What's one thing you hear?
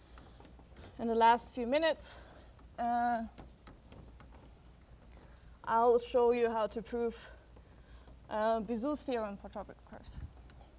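A young woman lectures in a large echoing hall, heard through a microphone.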